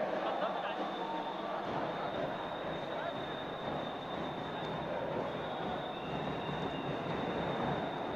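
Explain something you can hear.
Young women call out to one another on the court.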